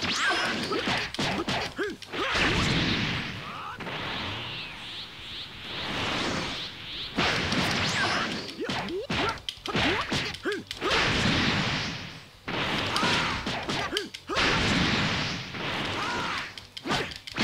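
Energy blasts whoosh and crackle.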